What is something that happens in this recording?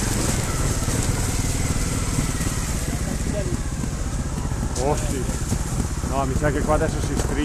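Motorcycle tyres splash through shallow water.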